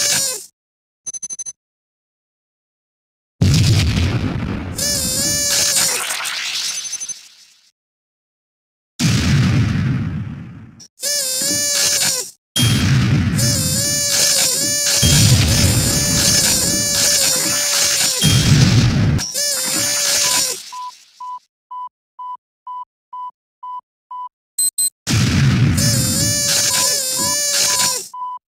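A gun fires with loud booming blasts.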